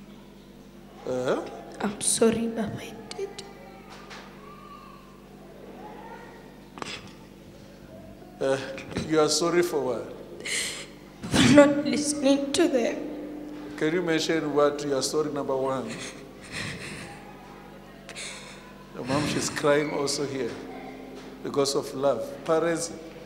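A young woman speaks into a microphone in a large echoing hall, pausing now and then.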